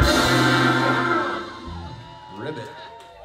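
A band plays a loud final chord that rings out and fades.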